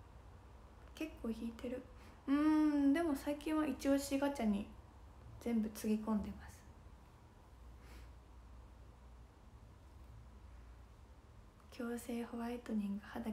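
A young woman talks casually and close to a microphone, in short bursts.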